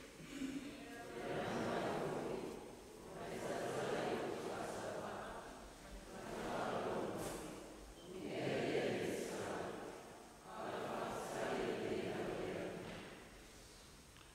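A congregation sings softly together in slow swells.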